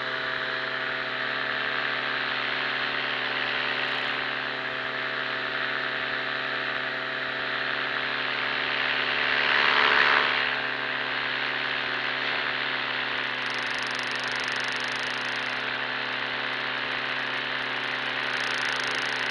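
Drone propellers whine steadily close by.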